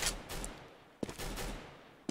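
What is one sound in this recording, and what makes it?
A rifle is drawn with a short metallic click.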